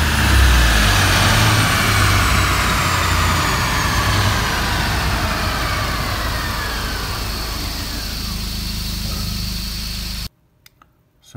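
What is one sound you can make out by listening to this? A car engine roars loudly at high revs, then winds down.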